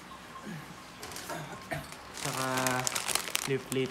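A plastic bag crinkles as it is handled.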